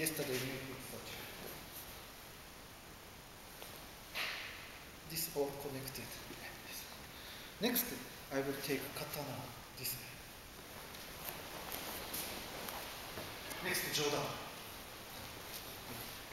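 Bare feet shuffle and thud on floor mats.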